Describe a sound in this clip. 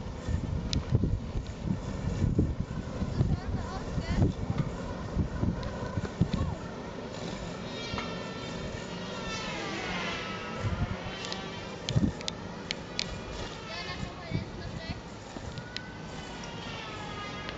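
A robotic lawn mower hums softly as it rolls over grass.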